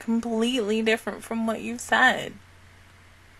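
A young woman speaks close into a microphone.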